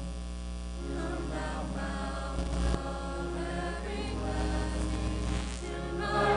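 Two men sing a hymn together into a microphone in an echoing hall.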